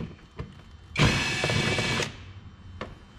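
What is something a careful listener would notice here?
A cordless drill whirs briefly at high speed.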